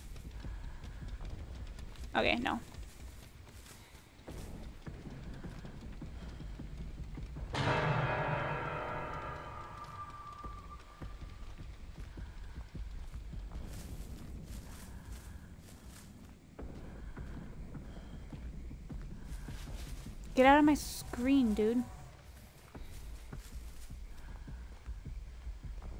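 Footsteps rustle quickly through grass and dry leaves.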